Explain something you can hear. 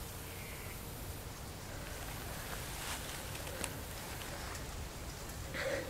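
A young woman gasps and breathes heavily in pain, close by.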